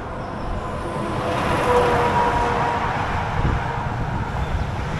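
A heavy truck roars past close by.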